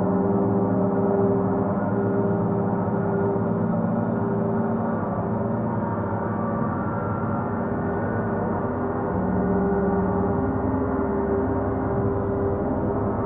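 Large gongs hum and shimmer with a deep, steady ringing tone.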